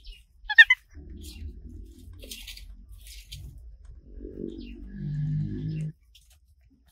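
A dog pants heavily.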